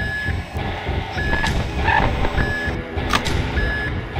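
A monitor flips down with a short mechanical clatter.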